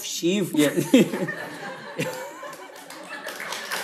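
A woman laughs brightly nearby.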